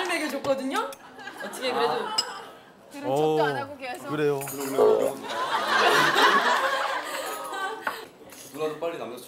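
A young man talks playfully nearby.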